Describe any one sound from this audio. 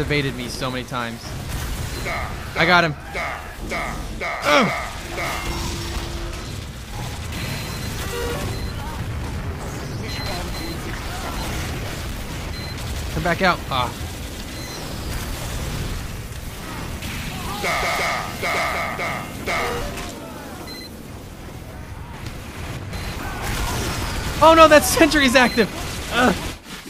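Guns fire in a game.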